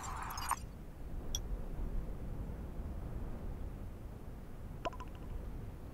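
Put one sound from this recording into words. Soft interface clicks sound as menus change.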